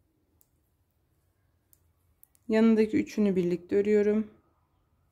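Knitting needles click softly.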